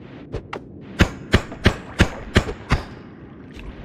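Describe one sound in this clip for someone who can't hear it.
Sharp electronic zaps from a game fire in quick succession.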